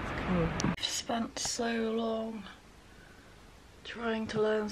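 A young woman sings softly close by.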